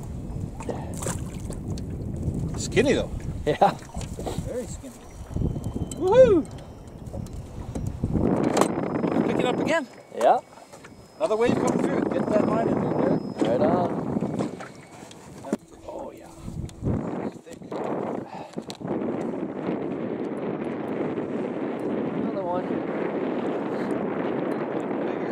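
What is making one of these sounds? Small waves slap against the side of a boat.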